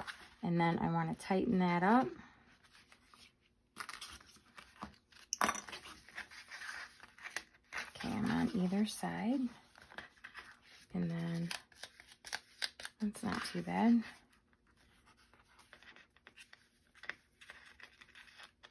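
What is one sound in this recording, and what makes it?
Paper rustles and crinkles as hands handle it.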